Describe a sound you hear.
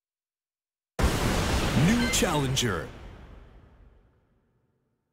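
A short electronic alert sound plays.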